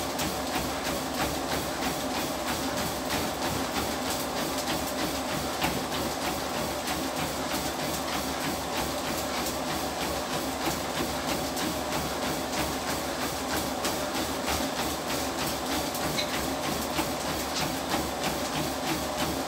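Feet pound rapidly and steadily on a treadmill belt.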